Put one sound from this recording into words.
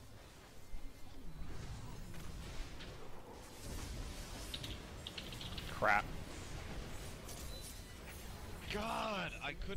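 Magic blasts and weapon strikes ring out in a fast fight.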